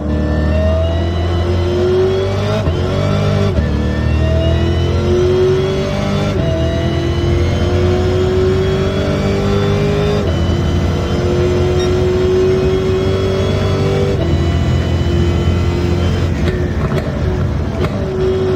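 A car engine revs hard, rising in pitch through each gear and dropping at each gear change.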